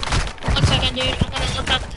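A knife slashes with a sharp swish.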